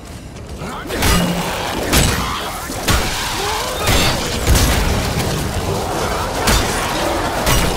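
A creature snarls and screeches.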